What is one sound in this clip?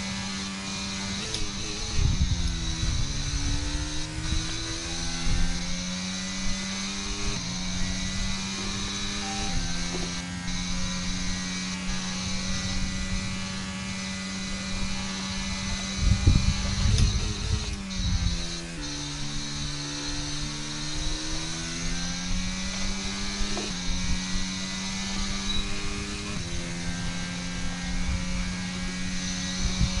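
A racing car engine screams at high revs and changes pitch as it shifts gears.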